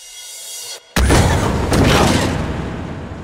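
A mine cart slams down with a loud crash.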